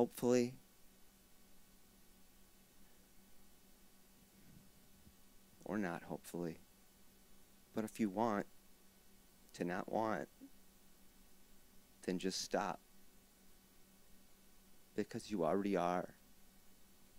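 A harmonica plays short wavering phrases up close, with pauses between them.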